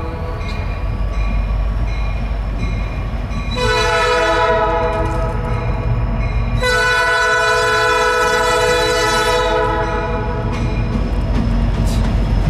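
A diesel locomotive engine rumbles as it approaches.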